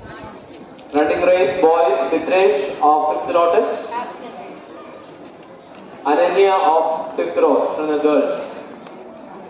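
A woman speaks loudly through a microphone and loudspeaker in an echoing hall.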